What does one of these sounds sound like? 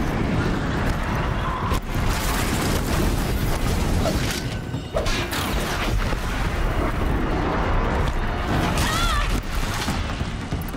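A large machine stomps and clanks.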